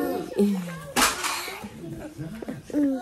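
A young woman laughs quietly close by.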